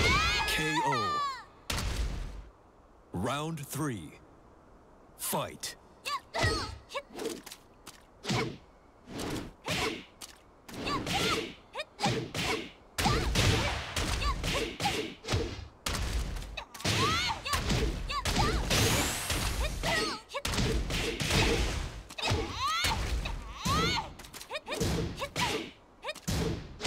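Punches and kicks land with sharp impact thuds in a video game fight.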